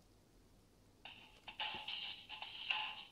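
A tinny electronic game tune plays from a small phone speaker.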